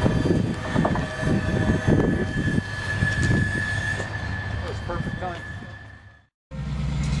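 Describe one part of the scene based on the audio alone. Freight train wheels clatter and rumble over rails, fading into the distance.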